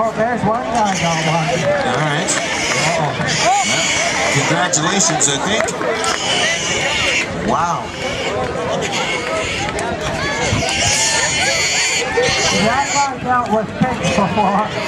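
A large outdoor crowd of men and women chatters and calls out at a distance.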